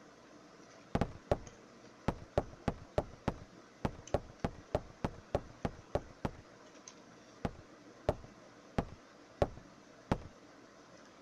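Footsteps tap on a wooden floor at an even pace.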